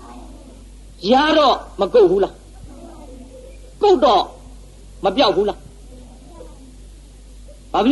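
A man speaks slowly and loudly through a microphone, with long pauses.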